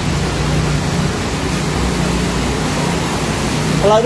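A truck engine rumbles as the truck drives through water.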